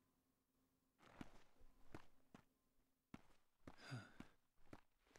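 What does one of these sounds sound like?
Footsteps tap on sandy ground.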